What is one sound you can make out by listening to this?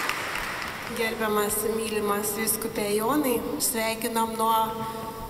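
A group of women and men sing together in a large echoing hall.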